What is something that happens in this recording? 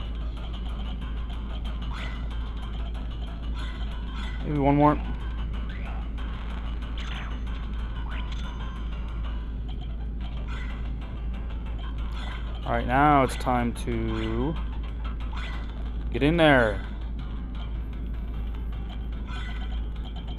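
Short electronic menu beeps chime as selections are made.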